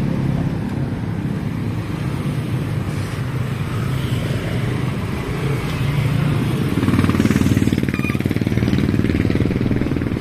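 Motorcycle engines hum and putter close by on a street.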